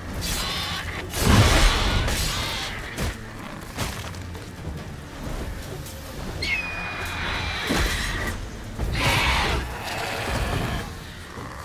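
A large beast roars and screeches.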